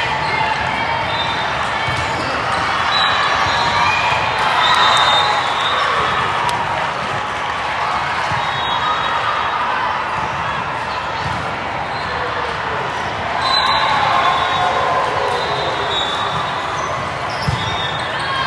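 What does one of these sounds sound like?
A volleyball thumps off players' arms and hands.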